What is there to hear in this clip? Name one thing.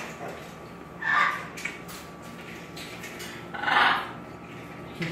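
A parrot squawks loudly.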